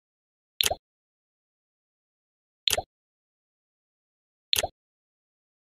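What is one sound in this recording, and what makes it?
Short electronic clicks sound as menu pages turn.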